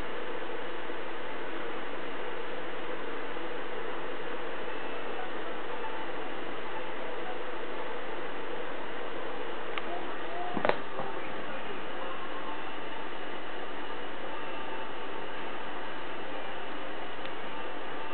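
A television plays quietly in the background.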